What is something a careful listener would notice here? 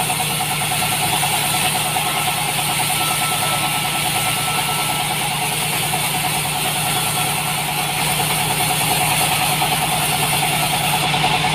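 A sawmill engine drones steadily.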